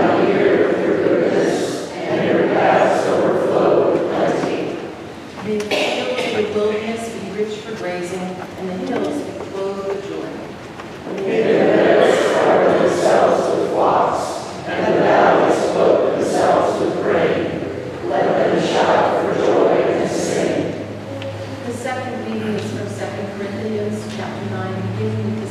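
A woman speaks steadily through a microphone in a large echoing hall.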